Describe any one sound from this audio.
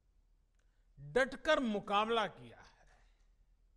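An elderly man speaks calmly and earnestly into a close microphone.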